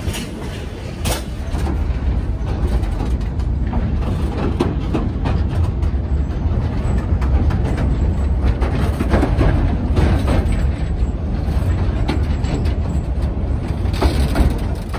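A train rumbles and clatters steadily along the tracks.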